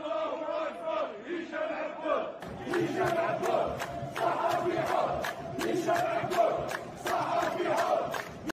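A large crowd chants loudly in rhythm outdoors.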